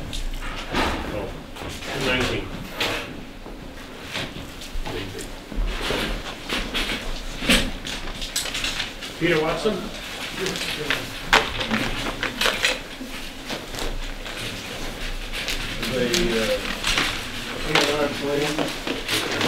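Paper rustles and crinkles as large sheets are handled.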